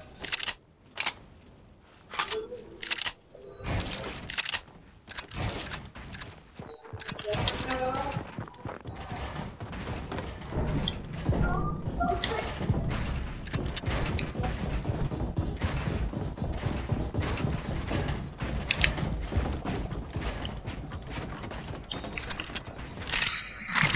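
Game building pieces snap into place with quick clicks and thuds.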